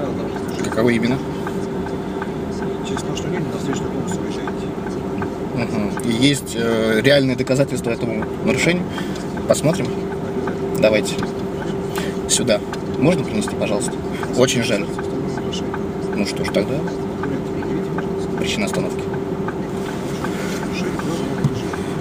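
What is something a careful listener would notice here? A man speaks calmly just outside a car window, heard through the glass.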